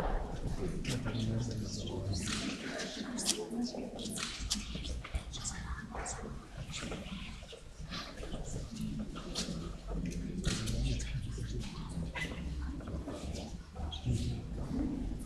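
A man speaks into a microphone, heard over loudspeakers in a large echoing hall.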